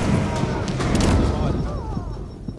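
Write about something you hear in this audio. A gun fires a loud burst of shots.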